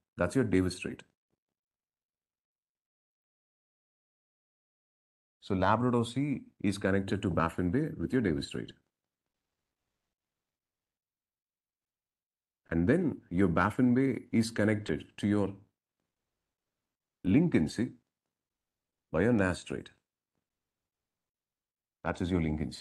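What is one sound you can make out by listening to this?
A man talks calmly into a close microphone, pausing now and then.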